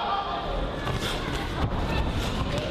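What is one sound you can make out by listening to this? Boxing gloves thud against a body.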